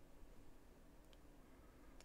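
A small metal tool clicks lightly against a hard surface.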